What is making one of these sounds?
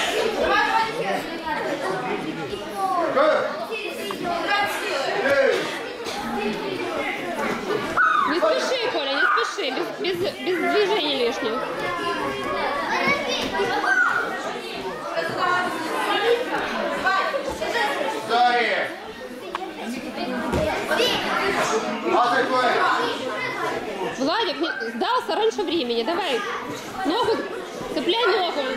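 A crowd of adults and children talks and calls out in a large echoing hall.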